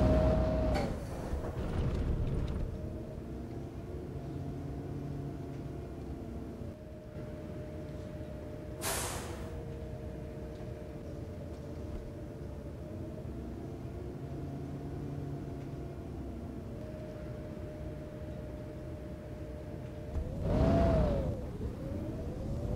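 A bus engine idles with a low hum, then briefly revs up.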